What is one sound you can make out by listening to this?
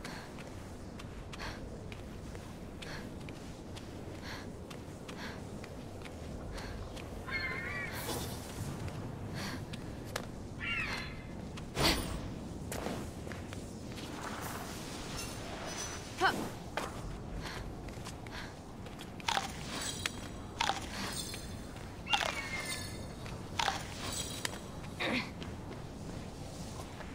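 Hands scrape and tap on rock as a figure climbs a cliff.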